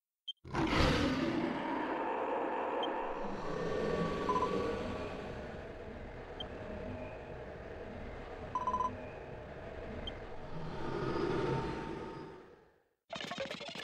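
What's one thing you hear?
A huge monster lets out a long, deep, rumbling roar that slowly fades away.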